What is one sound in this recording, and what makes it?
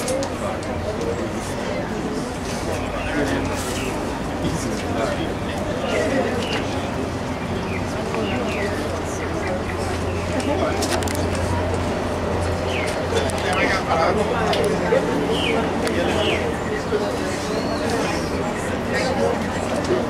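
A crowd of mourners murmurs and sobs quietly outdoors.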